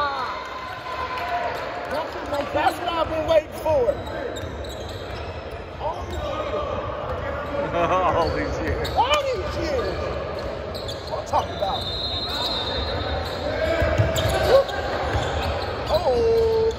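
A crowd of young spectators chatters in the background.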